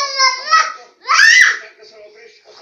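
A small child squeals loudly.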